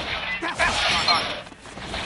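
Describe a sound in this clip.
A fast rush of air whooshes past.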